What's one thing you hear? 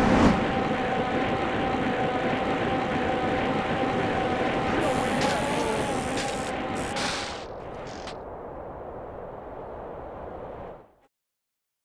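A BMX bike's tyres roll over asphalt.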